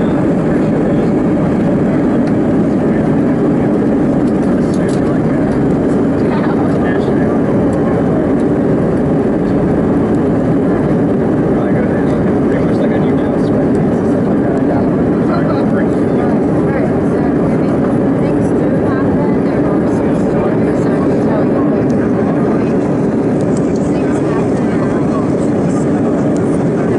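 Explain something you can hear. Jet engines roar steadily, heard from inside an aircraft cabin.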